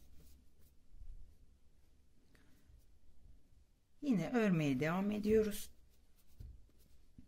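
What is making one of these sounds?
Yarn rustles softly as a crochet hook pulls loops through it.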